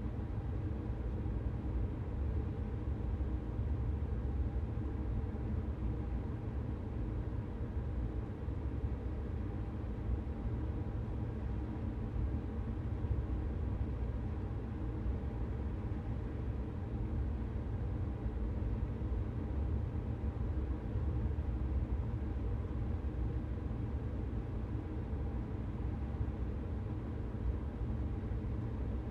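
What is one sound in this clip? An electric train hums and rumbles steadily along the rails.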